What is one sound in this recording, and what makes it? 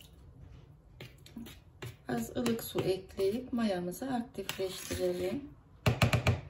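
A spoon scrapes and stirs through dry flour in a bowl.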